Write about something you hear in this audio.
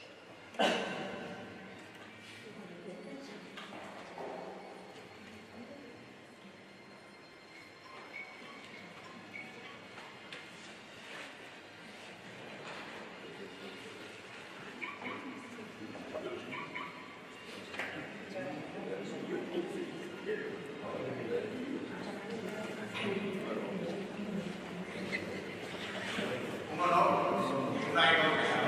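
A crowd murmurs and chatters in a large echoing hall, growing louder over time.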